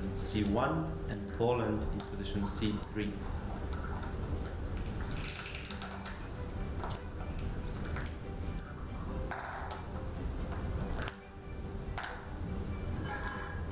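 Plastic balls click and rattle against each other.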